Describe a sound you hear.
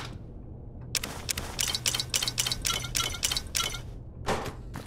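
Bottles clink and items click as they are taken out one after another.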